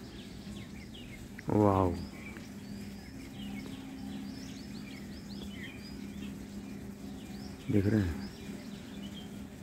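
A peacock rustles its fanned tail feathers as it folds them down.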